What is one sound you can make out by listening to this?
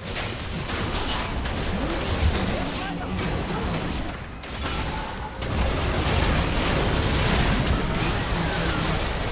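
Spells and attacks from a game battle crackle and clash in a busy fight.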